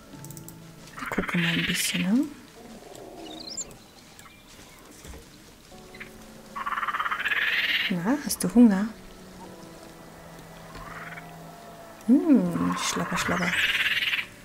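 A monkey chatters and squeaks in short bursts.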